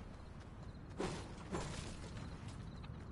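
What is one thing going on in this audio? A magical weapon fires with a bright whooshing blast.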